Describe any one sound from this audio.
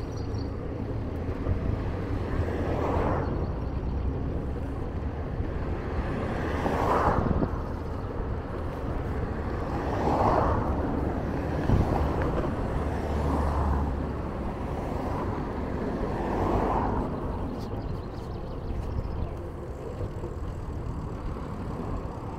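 Cars drive past on a nearby road, each swelling and fading.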